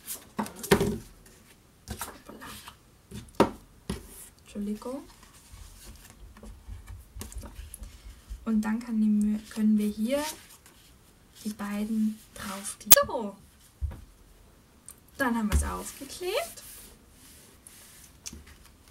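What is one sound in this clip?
Sheets of paper rustle and slide on a wooden table.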